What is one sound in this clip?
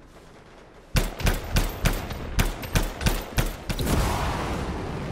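Rapid gunfire bursts ring out loudly.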